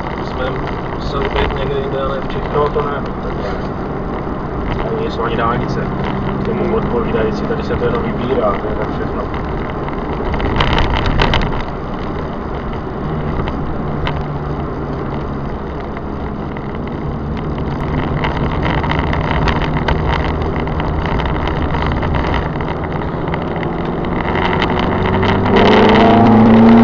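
Tyres roll over an asphalt road.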